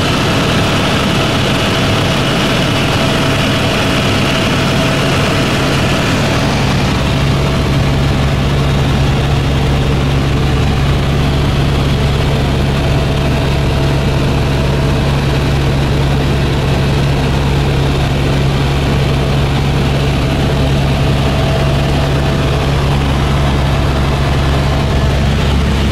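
A helicopter engine drones loudly and steadily inside the cabin.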